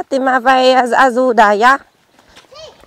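A woman speaks loudly and with animation close by.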